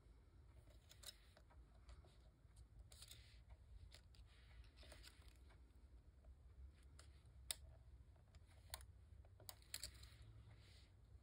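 Stiff paper rustles and taps softly as it is handled close by.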